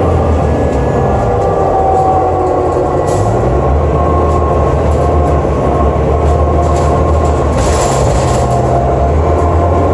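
The bus body rattles and clatters over the road.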